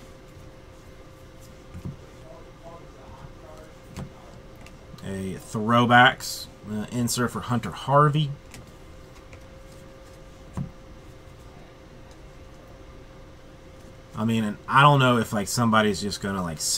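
Cardboard cards rustle and tap softly as they are handled.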